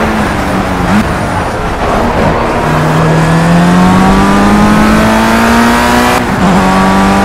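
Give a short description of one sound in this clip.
A racing car engine drops in pitch while slowing, then revs back up.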